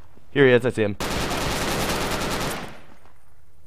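A rifle fires a rapid burst at close range.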